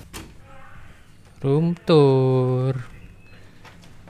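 A door handle clicks and a door swings open.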